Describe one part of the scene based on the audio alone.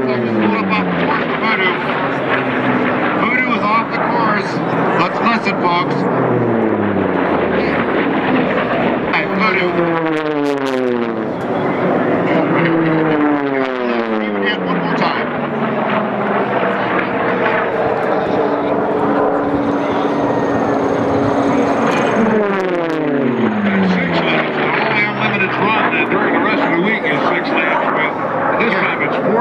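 Propeller plane engines roar loudly as planes race past, the pitch dropping as each one passes.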